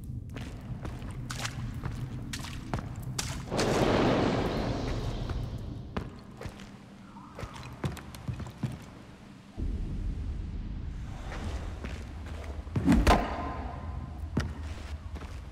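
Footsteps crunch on dirt and dry twigs.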